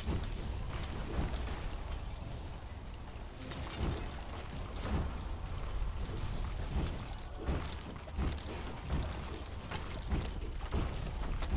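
Weapon slashes whoosh through the air.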